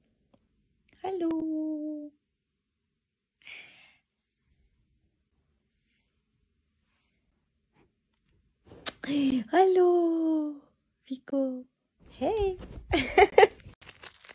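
A dog whines and howls in drawn-out, falling cries.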